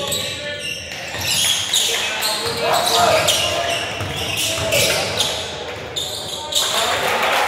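Players shout and call out to each other in a large echoing gym.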